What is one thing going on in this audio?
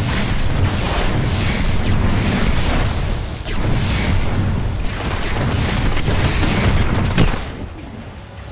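Fiery blasts roar and crackle loudly.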